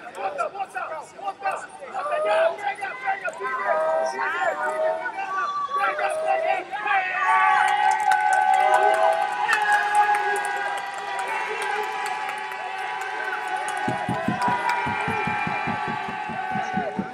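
Several men shout loudly in a large echoing hall.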